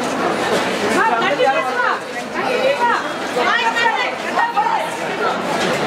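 Several women shout excitedly close by.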